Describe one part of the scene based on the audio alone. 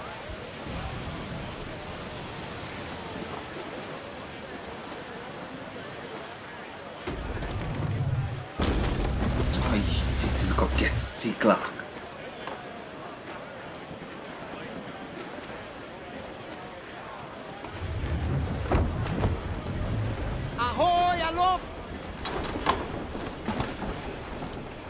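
Wind roars through a sailing ship's rigging.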